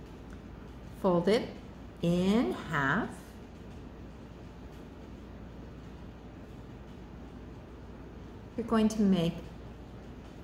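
An older woman speaks calmly, close by.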